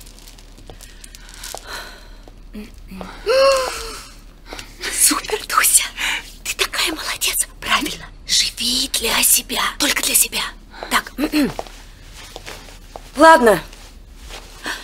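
A second woman answers excitedly, close by.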